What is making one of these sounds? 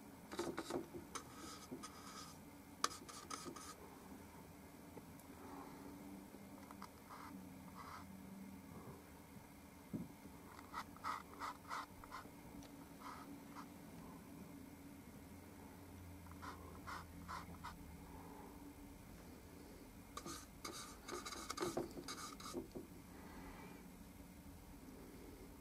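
A paintbrush taps and scrapes softly as paint is mixed.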